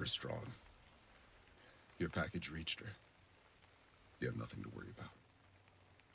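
An elderly man speaks in a low, gravelly voice.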